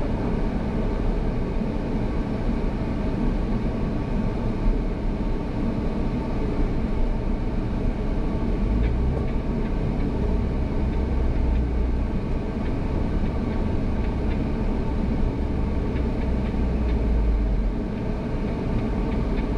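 A vehicle engine rumbles steadily while driving slowly over rough ground.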